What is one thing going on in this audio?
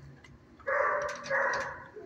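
A dog sniffs at a treat through metal bars.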